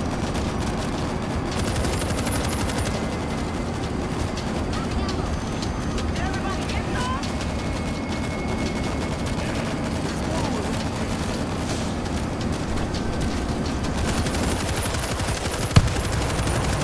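A heavy machine gun fires in rapid, rattling bursts.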